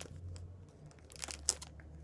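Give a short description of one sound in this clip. Scissors snip through plastic.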